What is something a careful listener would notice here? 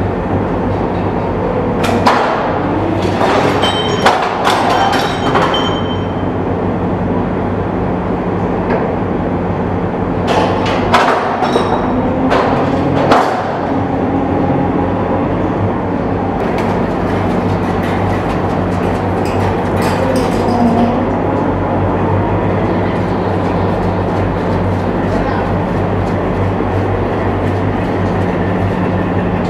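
An amphibious assault vehicle's diesel engine rumbles in an echoing enclosed deck.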